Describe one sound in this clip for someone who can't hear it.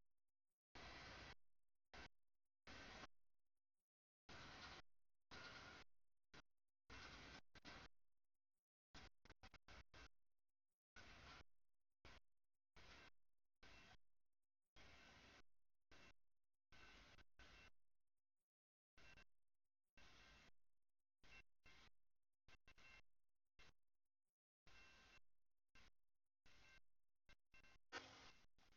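A crossing bell clangs over and over.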